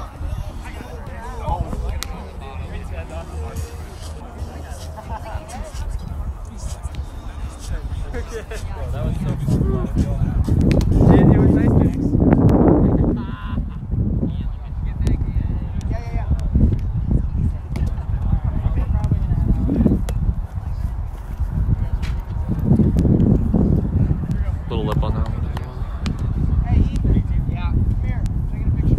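Young men call out and shout to each other at a distance.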